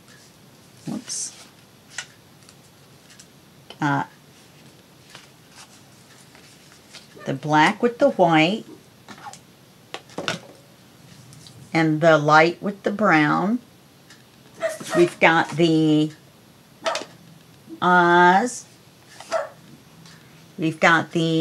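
Stiff paper cards slide and rustle softly on a mat.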